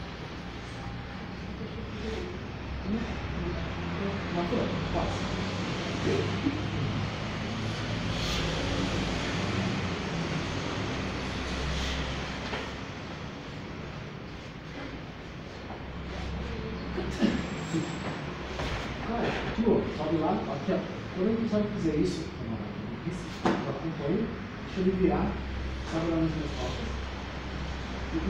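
Bodies and cloth shuffle and thump on a padded mat.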